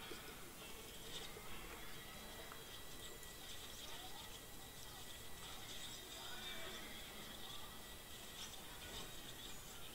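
Soldiers' weapons clash faintly in a distant skirmish.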